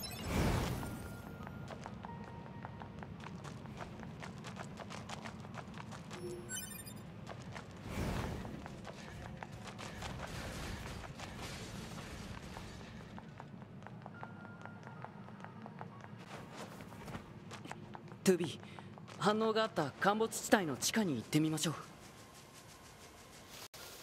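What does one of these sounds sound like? Footsteps run over stone and gravel.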